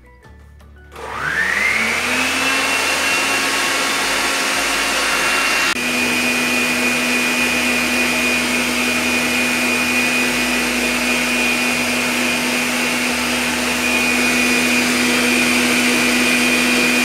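A stand mixer motor whirs up to speed and runs steadily with a loud hum.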